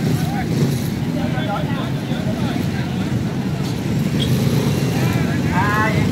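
Motor scooters drive past close by with a low engine hum.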